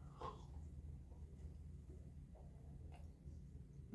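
A young man chews food close to a microphone.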